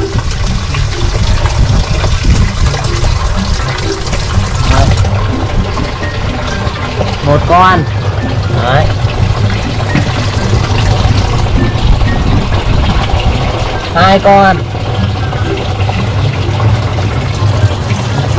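Water bubbles steadily in an aquarium.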